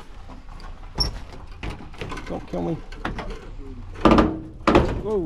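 A metal door latch clicks.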